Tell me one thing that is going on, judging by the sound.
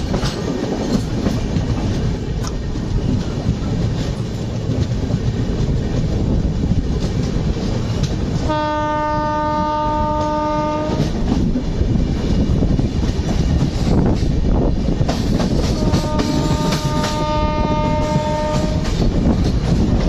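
A train rumbles and clatters steadily along the rails.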